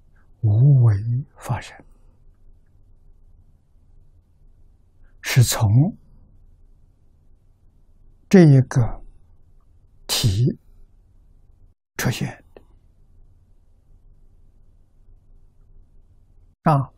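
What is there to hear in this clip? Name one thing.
An elderly man speaks slowly and calmly into a close microphone, pausing between phrases.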